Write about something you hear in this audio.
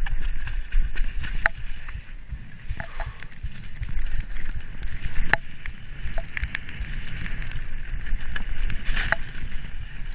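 Bicycle tyres rumble over a rough dirt trail.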